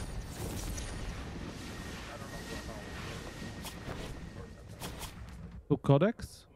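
A swirling wind whooshes steadily.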